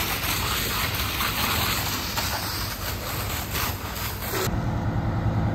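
A fire hose sprays water with a loud, steady hiss.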